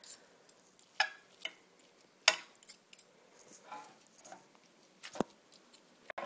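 A metal fork clinks against a glass dish.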